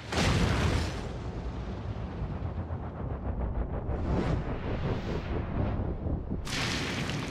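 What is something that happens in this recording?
Rocks crumble and tumble down with a rumble.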